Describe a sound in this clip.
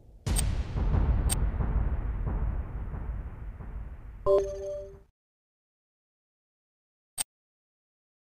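A game menu clicks as options are selected.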